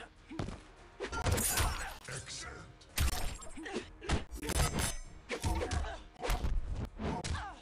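Heavy punches and kicks land with sharp thuds and smacks.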